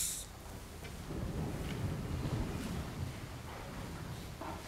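A large crowd sits down with seats creaking and clothes rustling in a large hall.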